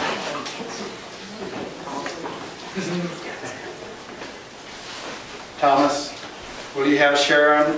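An elderly man speaks calmly in a room with some echo.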